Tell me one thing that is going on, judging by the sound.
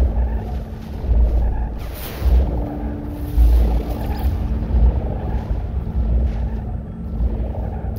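Heavy footsteps crunch over rough ground.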